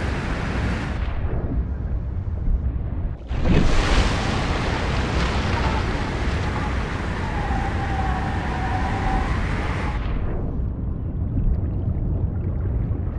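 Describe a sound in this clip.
Water rumbles, muffled, beneath the surface.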